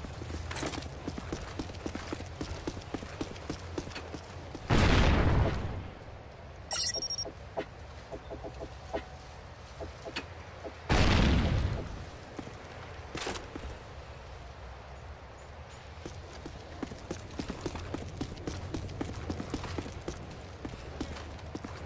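Footsteps patter steadily on stone pavement.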